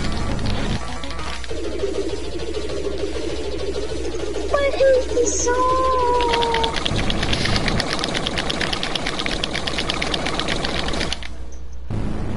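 Upbeat electronic game music plays with a steady beat.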